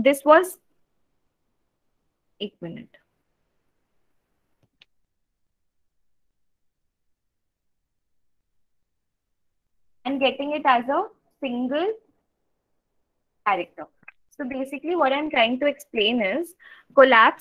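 A young woman speaks calmly into a close microphone, with pauses.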